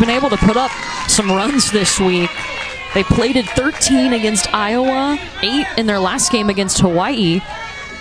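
A crowd of spectators claps.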